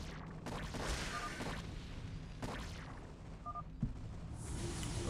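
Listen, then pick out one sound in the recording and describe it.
Gunfire and explosions crackle in a busy battle.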